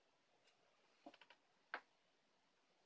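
A paper lid crinkles as it is peeled back from a cup.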